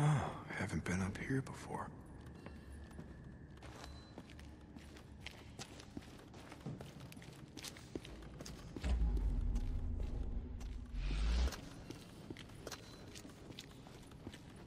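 Footsteps crunch on gravel and rock.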